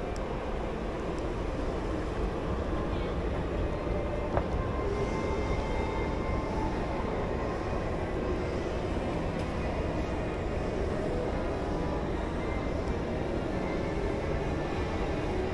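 An escalator hums steadily in a large echoing hall.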